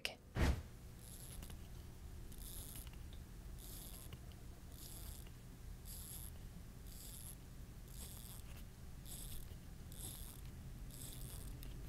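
A watch bezel clicks softly as it is turned.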